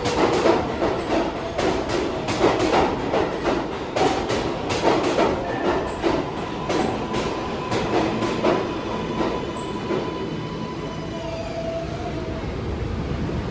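A subway train rolls past, its wheels clattering rhythmically on the rails and slowing down.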